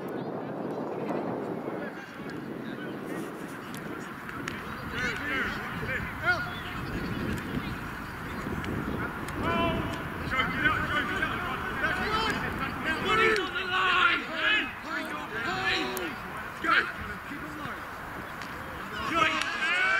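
Spectators shout encouragement from the sideline.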